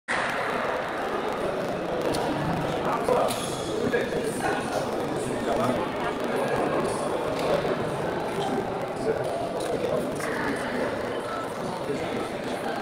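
A crowd of men chatters and calls out in a large echoing hall.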